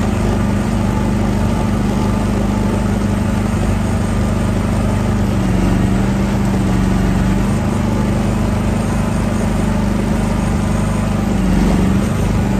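A small excavator's diesel engine runs with a steady low drone.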